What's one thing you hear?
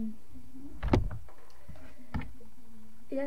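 A plastic case knocks against something.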